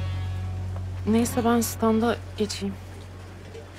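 A young woman speaks quietly and calmly.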